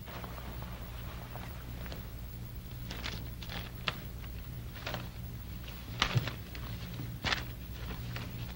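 Paper rustles softly in a man's hands.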